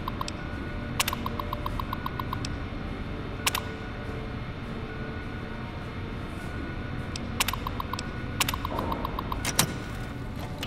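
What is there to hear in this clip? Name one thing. Keyboard keys clack sharply.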